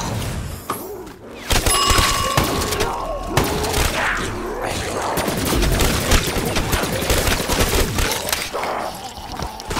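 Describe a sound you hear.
Zombies growl and snarl.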